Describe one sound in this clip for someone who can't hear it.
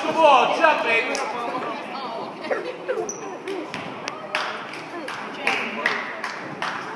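Spectators close by talk and call out in a large echoing gym.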